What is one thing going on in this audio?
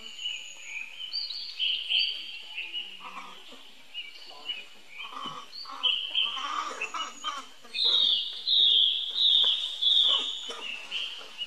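Monkeys scamper and rustle through leaves on the ground.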